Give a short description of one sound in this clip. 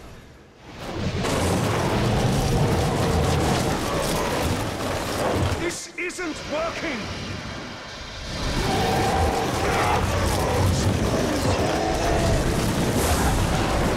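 Icy blasts hiss and burst in rapid bursts.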